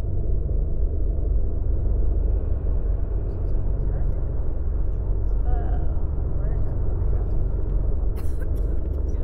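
A bus engine hums steadily with road rumble.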